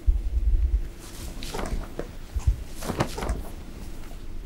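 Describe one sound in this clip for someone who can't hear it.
Long cloth sleeves swish through the air.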